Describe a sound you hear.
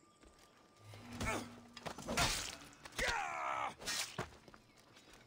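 A blade strikes with sharp metallic hits during a fight.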